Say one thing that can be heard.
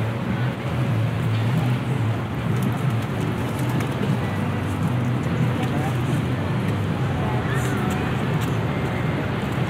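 City traffic hums steadily in the background outdoors.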